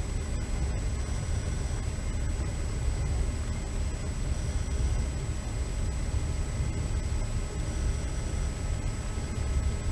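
A moving vehicle rumbles steadily, with a low droning noise.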